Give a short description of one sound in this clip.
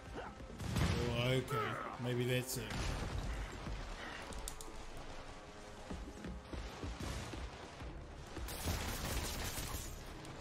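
Punches and thuds land in a fast fight.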